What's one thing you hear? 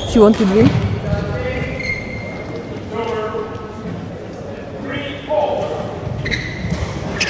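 Shoes squeak sharply on a hall floor, echoing in a large space.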